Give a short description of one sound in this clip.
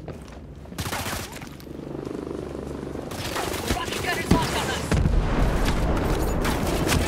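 Rapid gunshots crack and echo nearby.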